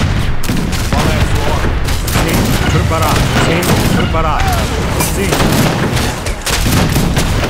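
Ship cannons boom and crack in quick succession.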